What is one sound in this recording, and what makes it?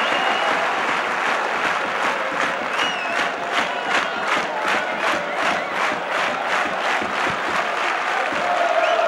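A large crowd claps in a steady rhythm.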